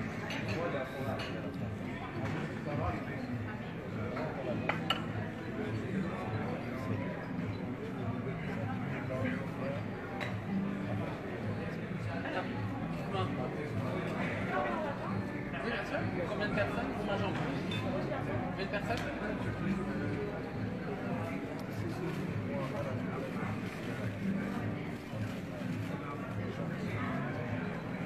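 Cutlery clinks on plates.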